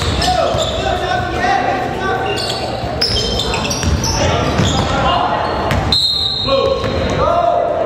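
Sneakers squeak sharply on a wooden court in a large echoing gym.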